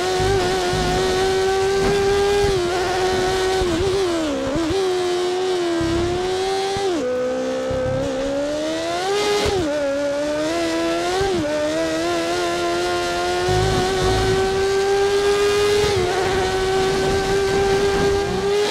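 A racing car engine whines at high revs, dropping and rising in pitch as it shifts gears through corners.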